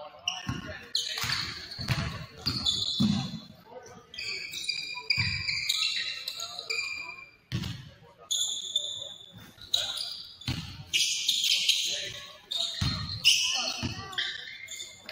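Sneakers squeak sharply on a gym floor in a large echoing hall.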